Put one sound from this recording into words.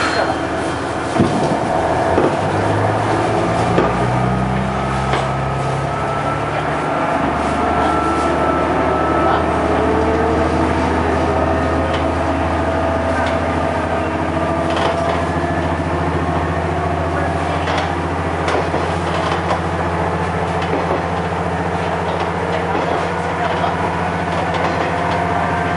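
A diesel railcar engine hums and changes pitch as the train pulls away.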